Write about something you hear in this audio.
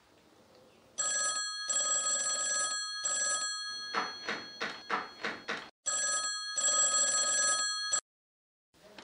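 A telephone rings repeatedly.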